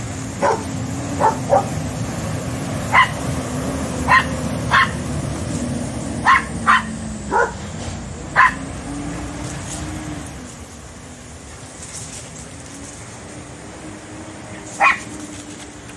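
A squirrel barks with sharp, repeated chirps.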